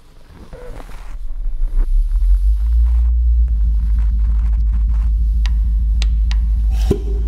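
An electronic instrument swells into a loud, deep, steady drone.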